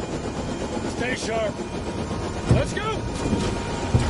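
A second man shouts urgently.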